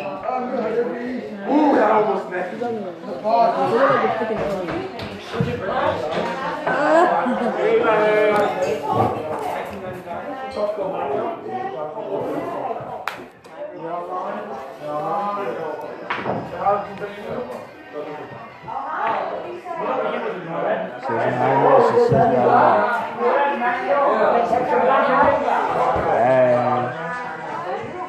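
A young man talks close to a phone microphone.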